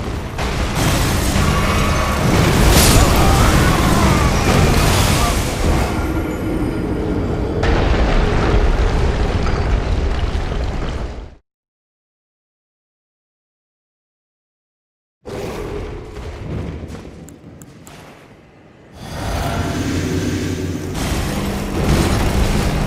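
A sword clashes against a huge beast.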